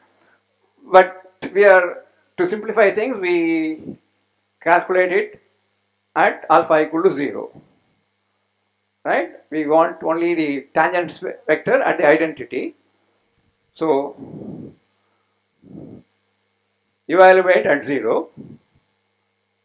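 An elderly man speaks calmly, lecturing in pauses.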